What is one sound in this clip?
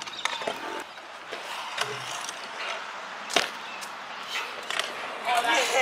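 A scooter deck clatters sharply as it lands on concrete.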